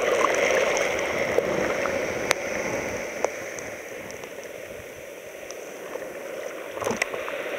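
Water fizzes and hisses as it runs up over small stones.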